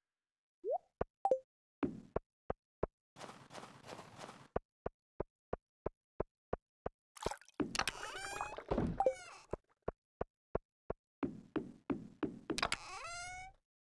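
Footsteps crunch steadily on snow.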